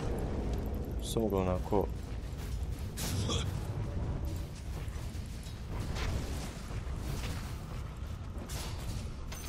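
Game spells burst and crackle in a fantasy battle.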